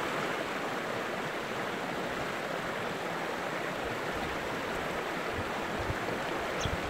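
Swimmers splash gently in water.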